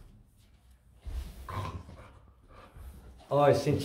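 Bare feet thud softly on the floor.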